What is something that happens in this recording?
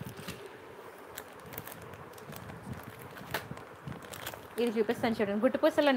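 Plastic packets rustle and crinkle as a hand handles them.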